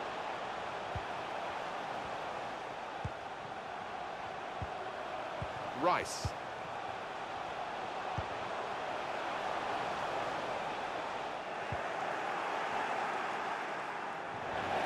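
A stadium crowd roars in a video game football match.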